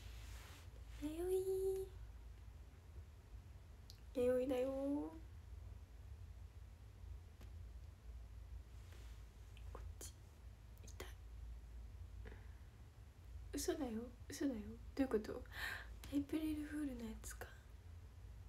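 A young woman speaks softly and close to a microphone, with pauses.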